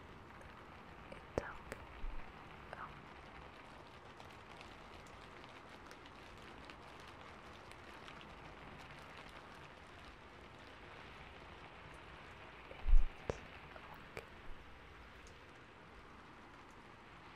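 Hands rustle and brush softly close to a microphone.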